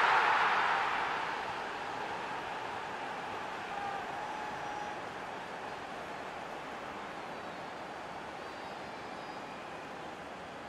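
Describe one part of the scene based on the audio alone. A stadium crowd roars and cheers loudly, then settles into a steady din.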